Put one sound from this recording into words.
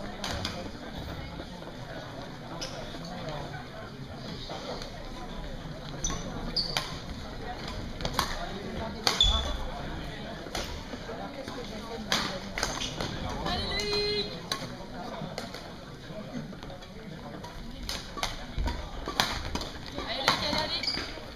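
Rackets strike a shuttlecock with sharp pops, echoing in a large hall.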